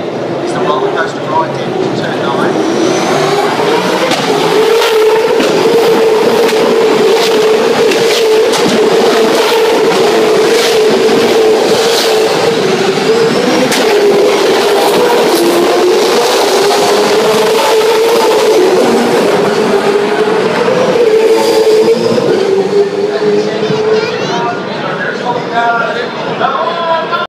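Race car engines roar loudly nearby as cars pass on the track.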